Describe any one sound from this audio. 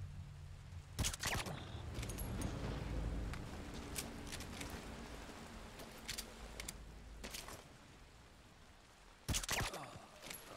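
A silenced pistol fires a muffled shot.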